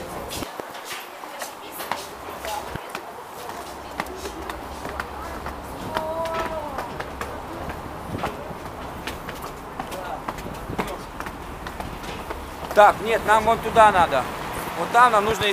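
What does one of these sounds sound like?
Footsteps tap on stone stairs.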